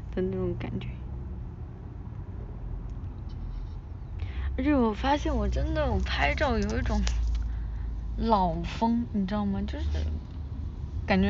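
A young woman speaks close to a phone microphone, in a lively, playful voice.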